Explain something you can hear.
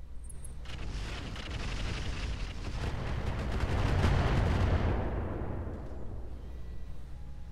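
An explosion booms and slowly rumbles away.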